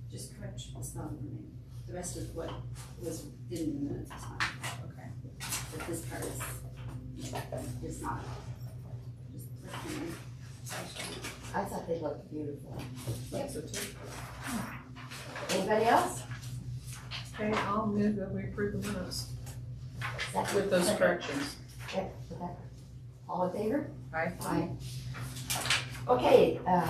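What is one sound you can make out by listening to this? A woman speaks calmly to a small group.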